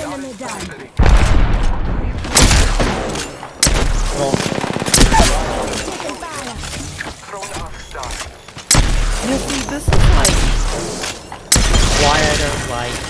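Gunfire rings out in loud rapid bursts.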